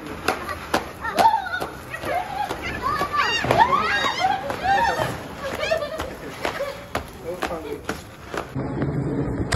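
Fireworks crackle and pop close by.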